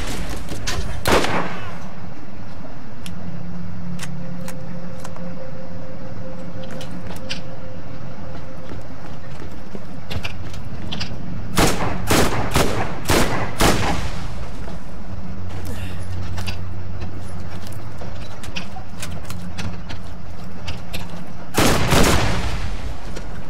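Gunshots from a game ring out in bursts.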